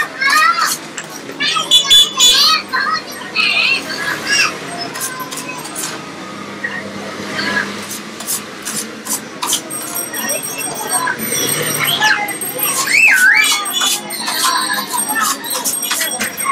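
Metal tongs scrape and clink against a metal tray.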